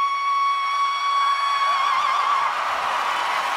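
A woman belts out a long, high sung note through a microphone, which wavers at the end.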